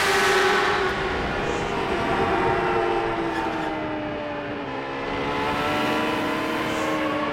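Wind rushes loudly past the car.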